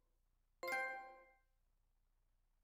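A bright notification chime rings out and quickly fades.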